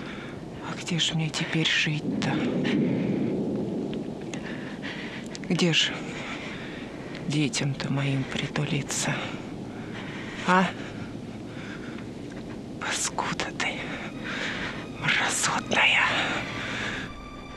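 An elderly woman speaks quietly and close by, in short broken phrases.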